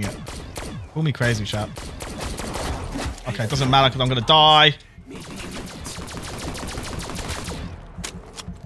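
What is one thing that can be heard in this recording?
Rapid gunfire crackles and bangs.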